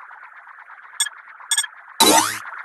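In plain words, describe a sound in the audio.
Game tiles chime softly when matched.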